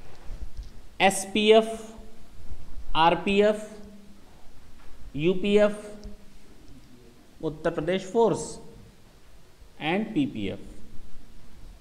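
A man speaks clearly in short phrases, as if teaching.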